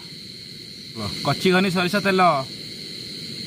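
A man speaks briefly and with animation, close by.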